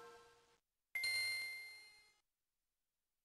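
A short high electronic ding rings and fades.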